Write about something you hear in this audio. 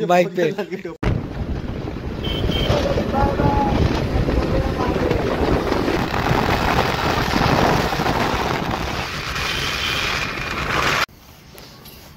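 Wind and traffic rush past steadily as a vehicle drives along a road.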